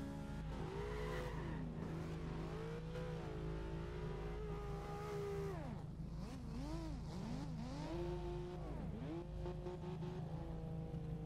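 A car engine revs up and down hard while drifting.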